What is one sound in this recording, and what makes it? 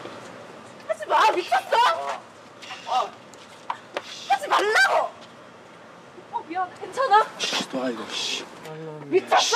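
A young man shouts and grunts angrily close by.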